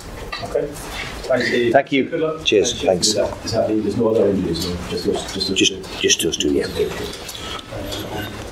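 An older man speaks calmly into a microphone, close by.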